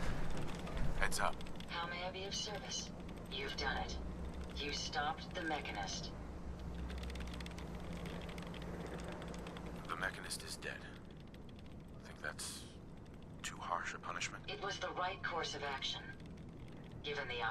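A woman speaks calmly in a slightly robotic voice.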